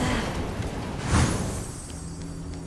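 Magic blasts crackle and burst in a fight.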